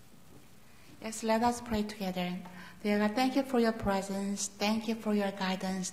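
A woman sings into a microphone in an echoing hall.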